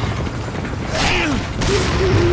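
A gun fires with a loud bang.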